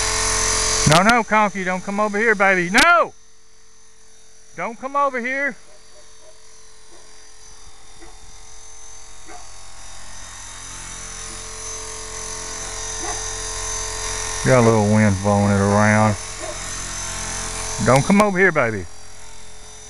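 A dog barks and whines in short bursts.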